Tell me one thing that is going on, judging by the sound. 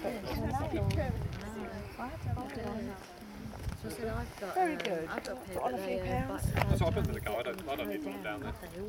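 Middle-aged women talk with animation close by, outdoors.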